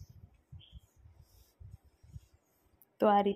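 Fingers brush and tap on fabric.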